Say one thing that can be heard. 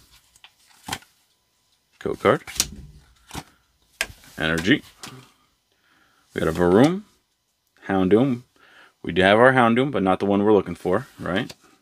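Cards slide and shuffle against each other.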